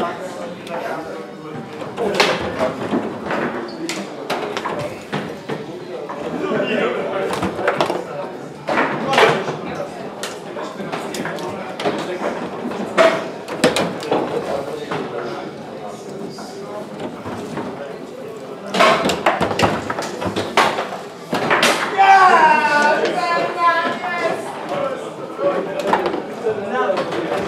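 A foosball ball clacks sharply against rods and the table walls.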